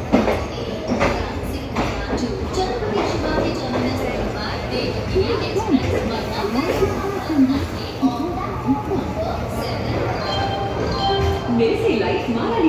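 A train rumbles steadily as it rolls slowly.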